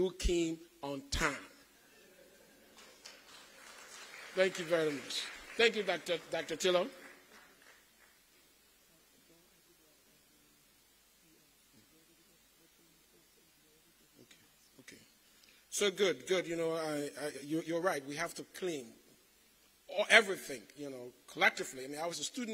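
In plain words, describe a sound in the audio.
A man speaks at a slow, measured pace through a microphone and loudspeakers in a large echoing hall.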